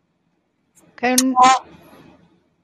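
A man speaks a few short words over an online call.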